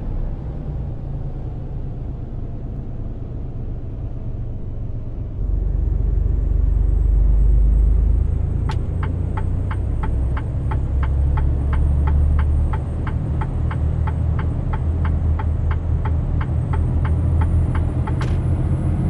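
A truck engine drones steadily, growing louder partway through.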